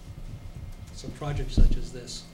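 A younger man speaks briefly through a microphone.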